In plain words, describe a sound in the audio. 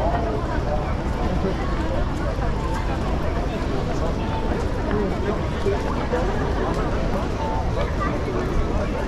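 A crowd murmurs in a busy street outdoors.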